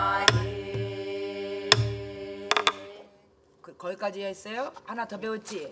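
A drum is struck with a stick a few times, booming sharply.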